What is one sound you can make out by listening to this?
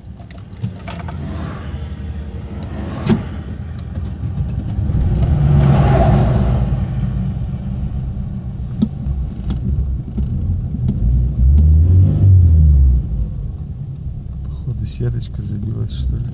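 A car engine hums and revs up and down, heard from inside the car.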